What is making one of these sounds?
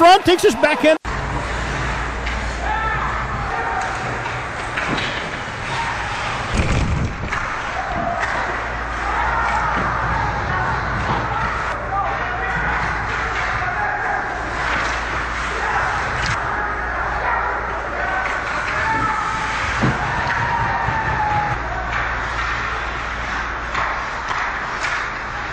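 Skates scrape across the ice.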